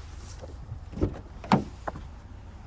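A car door latch clicks and the door swings open.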